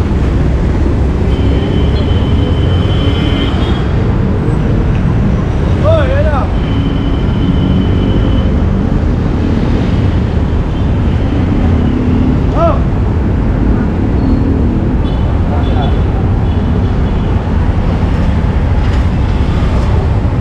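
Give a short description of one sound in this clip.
Motor tricycle engines rumble steadily nearby in busy street traffic.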